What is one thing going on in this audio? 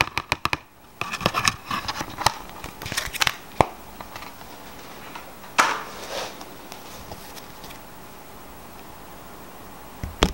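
Playing cards slide and tap against each other.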